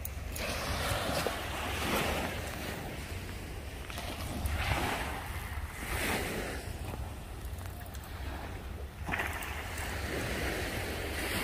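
Wind blows against the microphone outdoors.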